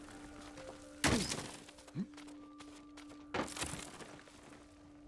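A grappling hook swings and catches on rock with a whoosh.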